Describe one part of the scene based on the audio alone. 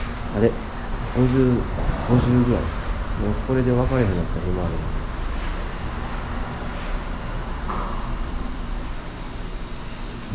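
A hand scratches and rubs thick animal skin.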